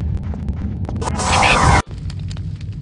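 A magic spell bursts with a loud crackling blast.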